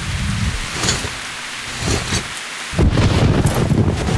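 Leaves and fern fronds rustle.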